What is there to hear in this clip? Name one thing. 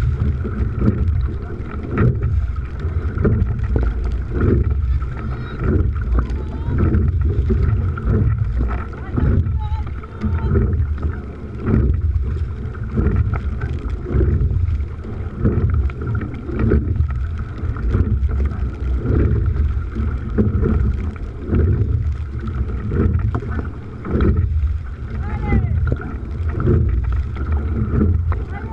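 Water rushes along a moving boat's hull.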